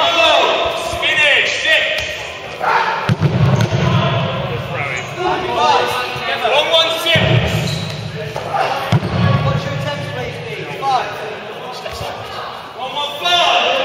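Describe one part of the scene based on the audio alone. Young men shout and call out with animation in a large echoing hall.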